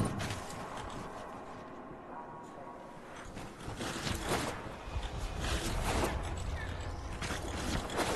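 Electric zaps crackle in sharp bursts.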